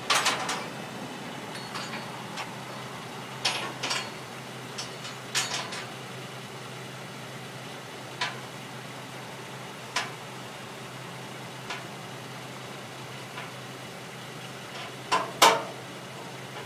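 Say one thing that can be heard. Metal tools clank and knock against a car wheel.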